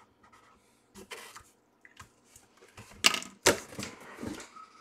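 A cardboard box rustles and thumps as it is handled up close.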